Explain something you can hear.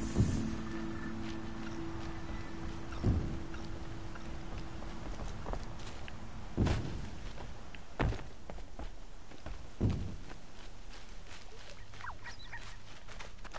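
Light footsteps run over wooden boards.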